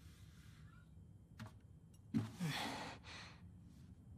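A guitar is lifted out of a hard case with a soft thump.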